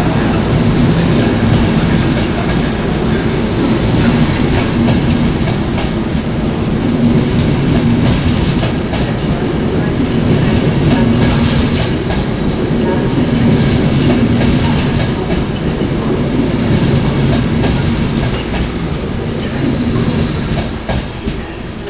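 A train rumbles past slowly with a loud, steady roar.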